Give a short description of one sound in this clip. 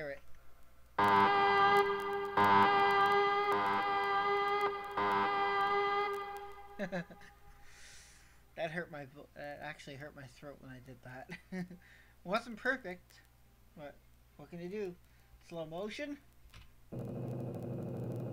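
A keyboard plays sustained chords.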